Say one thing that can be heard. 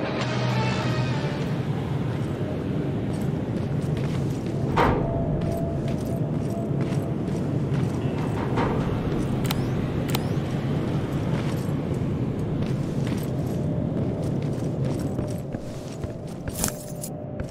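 Footsteps crunch over concrete and debris at a steady walking pace.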